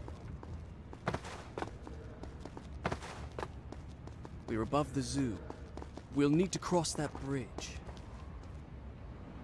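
Quick footsteps run and patter on stone.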